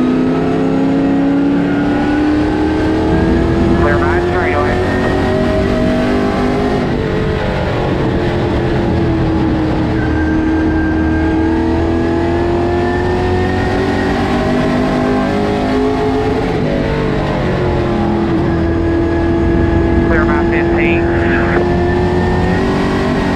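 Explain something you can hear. Road noise rumbles steadily through the car.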